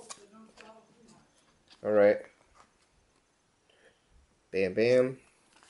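A cardboard box rustles as hands turn it over.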